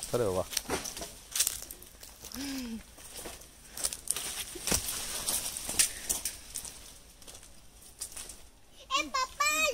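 Leaves and branches rustle and creak as children climb a tree.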